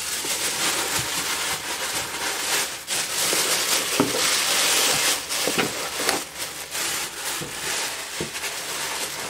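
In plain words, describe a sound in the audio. Cardboard scrapes and thumps softly.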